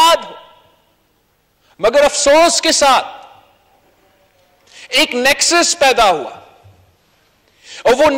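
A young man speaks forcefully into a microphone in a large echoing hall, in short bursts with pauses.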